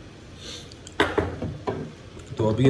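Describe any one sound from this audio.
Metal parts knock against a hard surface.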